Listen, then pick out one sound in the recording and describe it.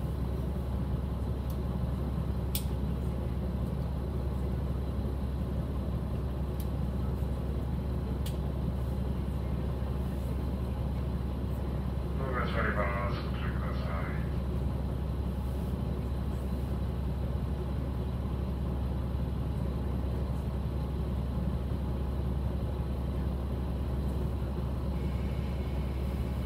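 A diesel railcar's engine idles at a standstill, with a low, steady hum.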